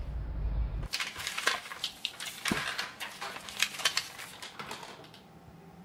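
Papers rustle and crinkle close by.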